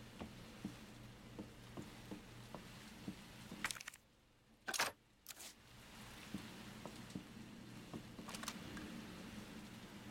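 Slow footsteps tread on a hard floor.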